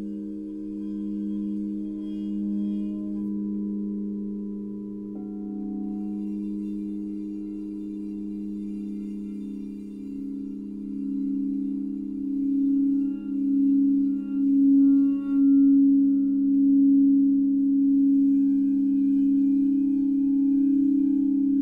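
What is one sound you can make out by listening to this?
Crystal singing bowls ring with sustained, overlapping tones as a mallet rubs around their rims.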